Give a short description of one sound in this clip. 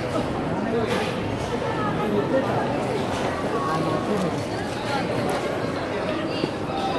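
A large crowd chatters nearby and all around.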